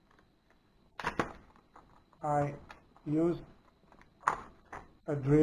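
A plastic case clicks and rattles as it is handled.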